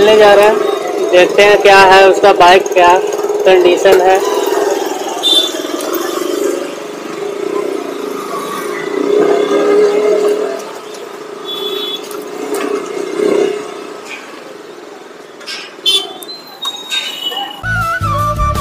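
A single-cylinder motorcycle engine runs at low speed as the bike moves slowly through traffic.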